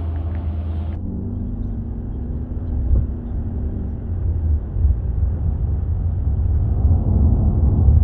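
Road noise rumbles inside a moving car.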